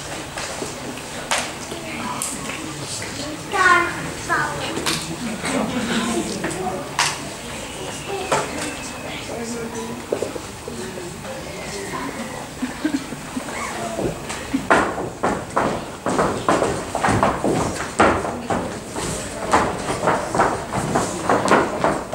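An audience murmurs and chatters in a large echoing hall.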